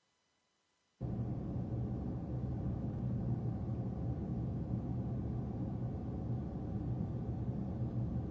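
A car engine rumbles low and steady, heard from inside the car.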